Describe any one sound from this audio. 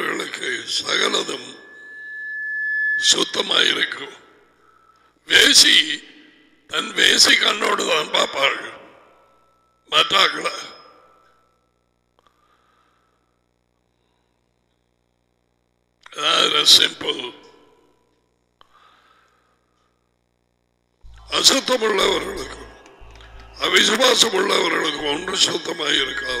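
A middle-aged man speaks through a headset microphone, in bursts with pauses.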